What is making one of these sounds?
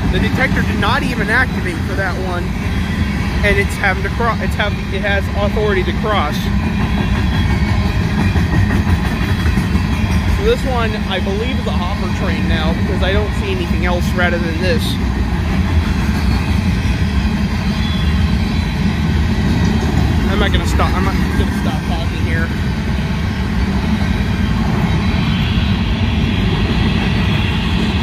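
A freight train rumbles steadily past at close range.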